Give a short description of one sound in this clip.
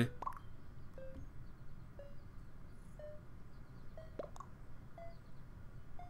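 A short electronic beep sounds once a second, like a countdown ticking.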